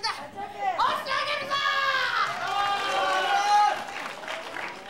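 A female wrestler shouts.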